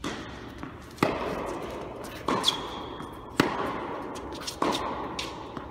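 Tennis balls are struck hard with rackets, echoing in a large hall.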